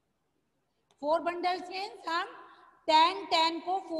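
A woman speaks clearly and with emphasis, close by.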